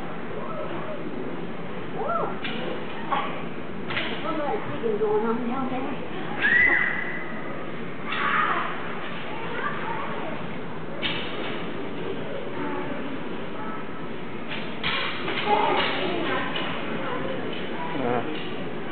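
Spectators chatter and call out nearby.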